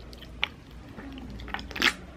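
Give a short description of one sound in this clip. Ice clinks in a glass.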